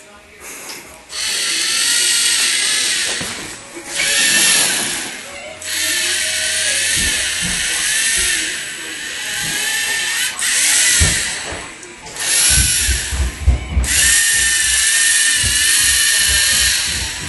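A small robot's motor whirs as it drives across the floor.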